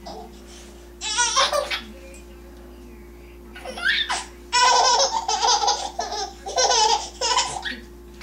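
A baby squeals and laughs loudly.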